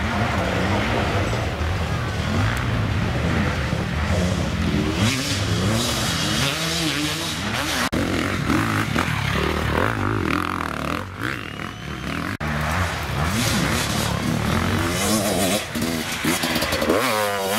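A dirt bike engine revs hard and roars up close, rising and falling.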